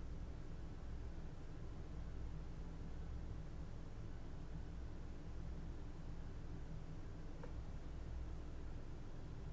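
A modular synthesizer plays a low, steady droning rumble.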